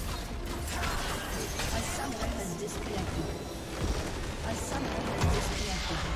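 Game combat sounds clash and crackle loudly.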